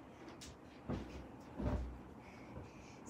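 Feet thump on soft sofa cushions.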